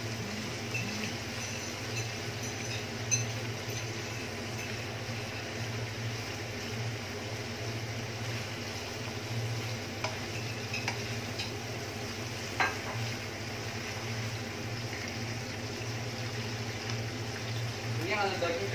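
Meat sizzles steadily in a hot pan.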